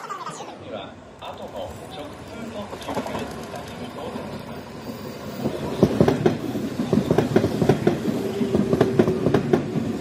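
A train approaches and rumbles past close by.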